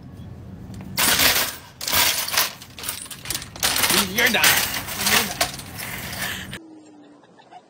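A shopping cart rattles as it rolls along.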